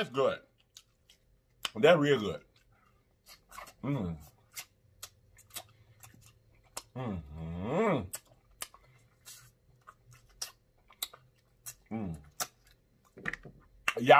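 Food crunches and smacks as a man chews close to a microphone.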